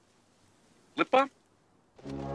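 A man says a short word up close.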